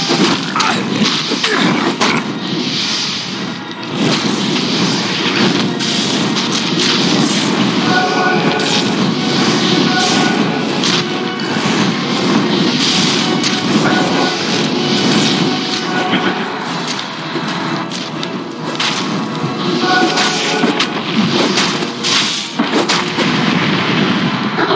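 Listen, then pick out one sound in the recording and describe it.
Weapons clash and clang in a game battle.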